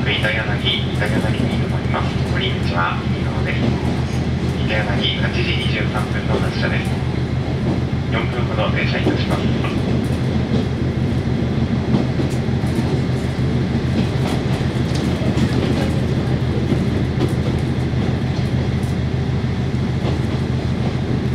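A diesel railcar engine drones, heard from inside the car.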